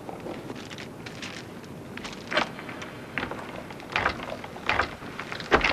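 Footsteps crunch on gravel and echo in a tunnel.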